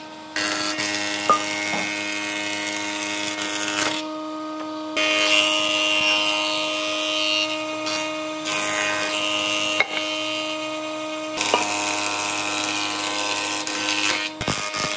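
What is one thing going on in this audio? A wood planer whines loudly as it shaves a board.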